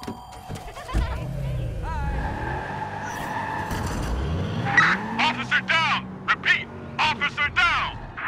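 A car engine starts and revs loudly.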